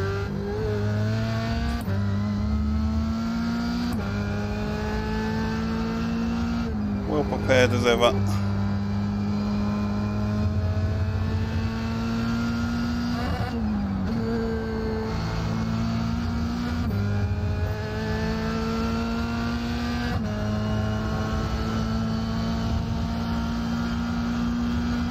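A racing car engine revs high, rising in pitch and dropping with each gear change.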